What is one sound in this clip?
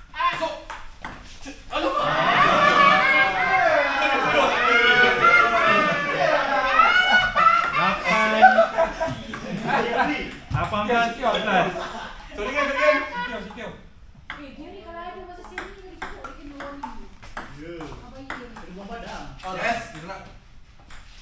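A ping-pong ball clicks sharply against paddles and the table.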